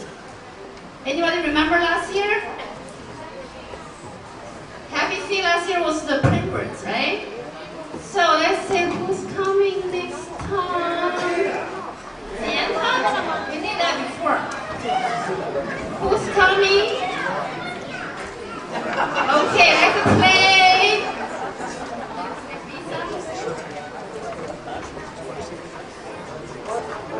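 A large group of children play violins together in short phrases, echoing in a large hall.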